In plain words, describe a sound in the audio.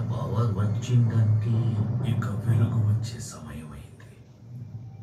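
A man speaks slowly in a deep, solemn voice.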